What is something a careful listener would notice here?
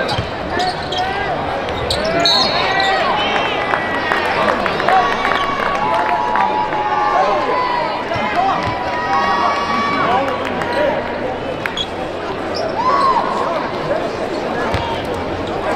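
Sneakers squeak sharply on a hardwood court in a large echoing arena.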